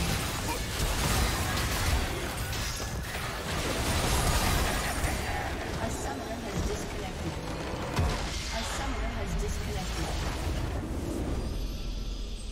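Magic blasts, clashes and impacts crash in a fast video game battle.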